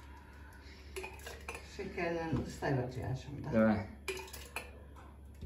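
A glass jar clinks and knocks in a metal sink.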